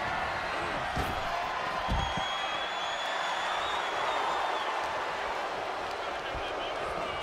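Heavy thuds of bodies slam onto a wrestling ring.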